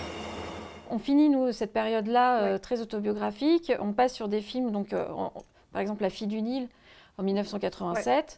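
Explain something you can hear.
A woman talks calmly and clearly into a microphone.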